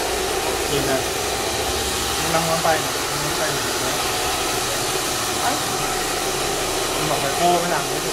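A hair dryer blows with a steady whooshing roar close by.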